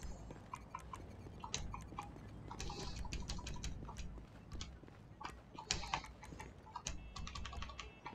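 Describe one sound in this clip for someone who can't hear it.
Short electronic beeps sound as a video game menu is scrolled.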